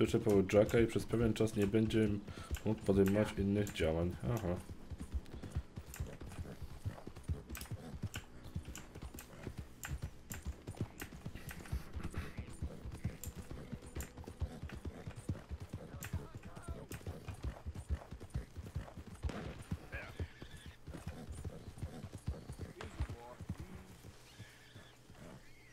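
A horse's hooves thud steadily as it gallops.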